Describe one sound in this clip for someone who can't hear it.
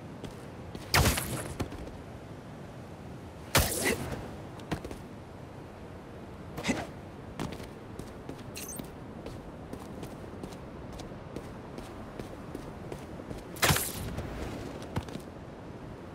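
Web lines snap and whoosh past as a figure swings up through the air.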